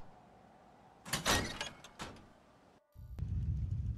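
A heavy metal door opens.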